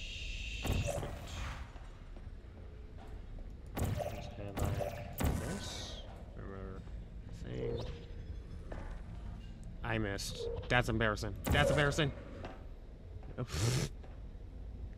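A sci-fi gun fires with short zapping bursts.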